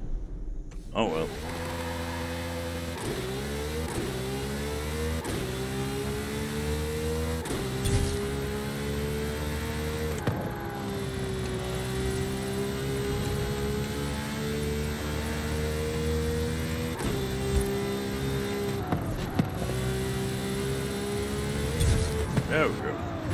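A racing car engine roars at high revs, rising in pitch with each gear and dropping briefly at each gear change.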